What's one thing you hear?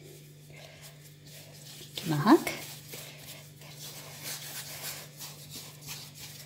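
Hands softly pat and roll dough balls on a mat.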